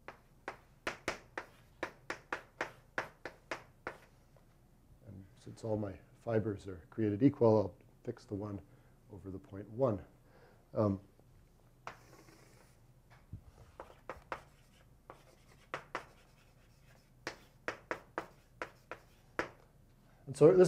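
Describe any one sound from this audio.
Chalk taps and scrapes quickly on a blackboard.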